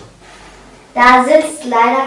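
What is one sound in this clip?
A young girl speaks brightly close by.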